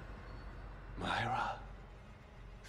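A man asks a short question, stunned.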